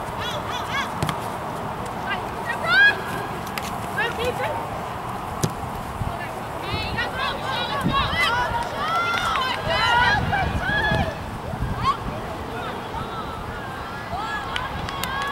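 Young women shout and call out across an open field.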